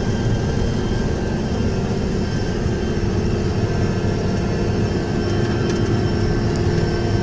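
A tractor engine drones steadily from inside the cab.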